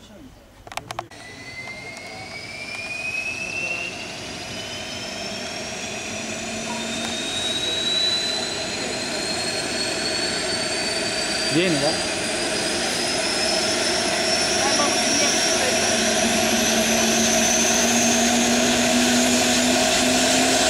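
A helicopter engine starts up with a whine that rises steadily in pitch and grows louder.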